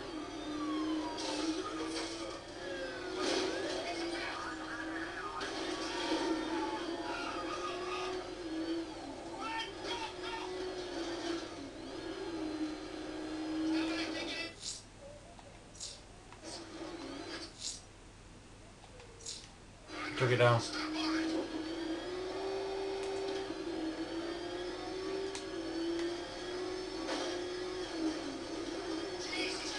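Crashes and impacts bang out in a game.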